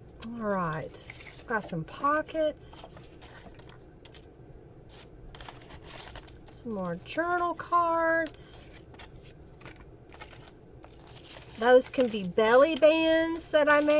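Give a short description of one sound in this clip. Paper pages rustle and tap as they are handled and turned.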